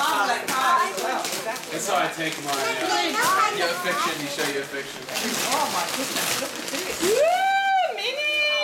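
Young children chatter excitedly close by.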